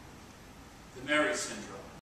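A man speaks out loud in a nearby, slightly echoing room.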